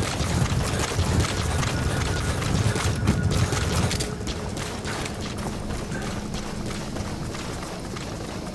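Footsteps run through dry grass and brush.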